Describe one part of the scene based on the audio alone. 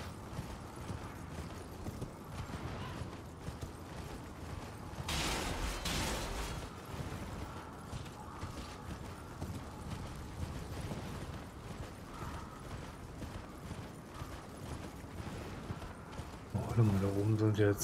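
A horse gallops over rough ground.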